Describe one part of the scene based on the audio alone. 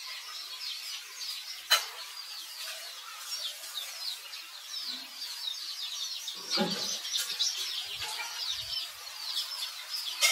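A monkey licks wetly at close range.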